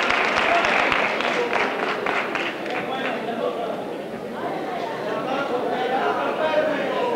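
Children talk and call out together in a large echoing hall.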